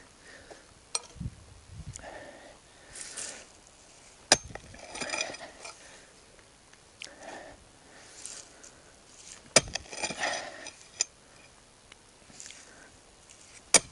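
A pickaxe strikes hard, stony ground with sharp thuds.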